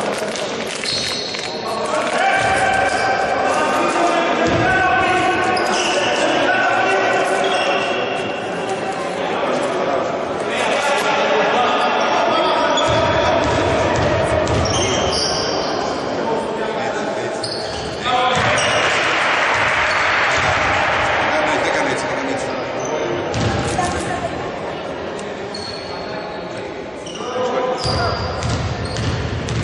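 Men on a team bench shout and call out loudly.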